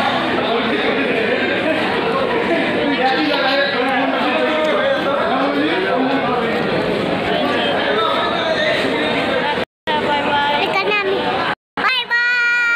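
A crowd chatters and bustles nearby.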